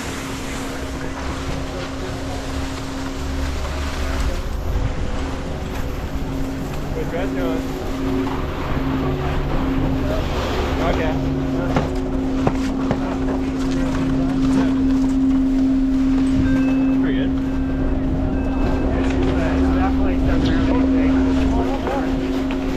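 A snowboard scrapes and slides over packed snow.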